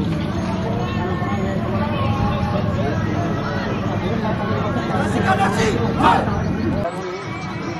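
Young men talk together closely.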